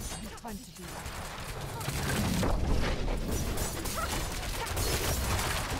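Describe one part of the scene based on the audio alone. Spell blasts and creature attacks crash and rumble in a game battle.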